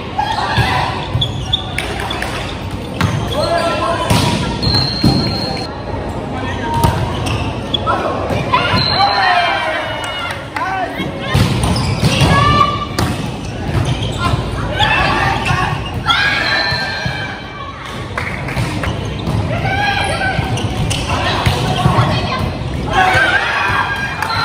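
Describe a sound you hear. Young men and women shout and call out to each other across a large echoing hall.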